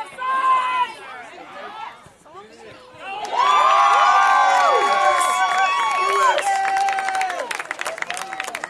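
Young men shout and cheer excitedly from across an open field.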